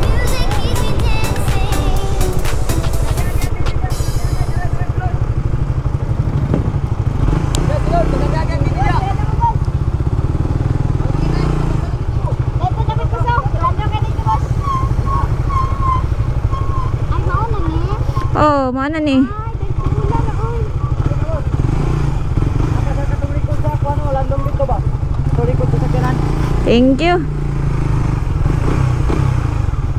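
A motorcycle engine rumbles steadily as it rolls slowly.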